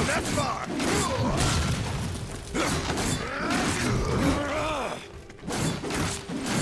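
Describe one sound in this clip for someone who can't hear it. Metal blades swing and clash in a fight.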